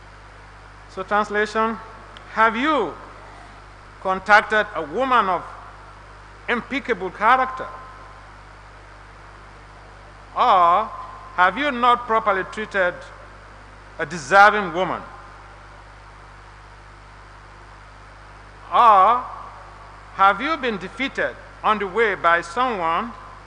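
An elderly man speaks slowly and calmly through a microphone in a large room, with pauses between phrases.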